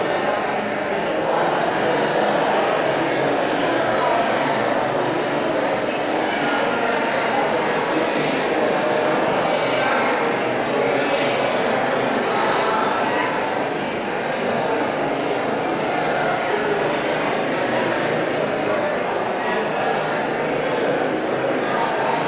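A woman speaks steadily through a microphone in a large echoing room.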